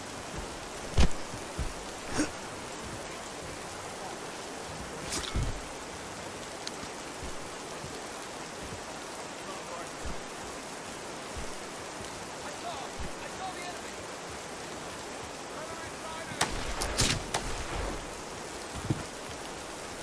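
Video game impacts thud and crack.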